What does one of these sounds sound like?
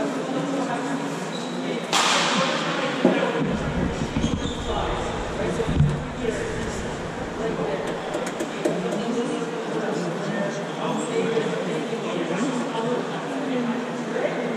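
A crowd of young men and women chatters in a large echoing hall.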